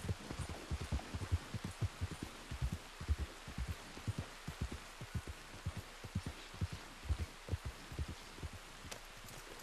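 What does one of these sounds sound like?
Horse hooves thud quickly on soft ground.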